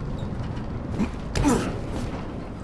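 Feet land with a heavy thud on wooden planks.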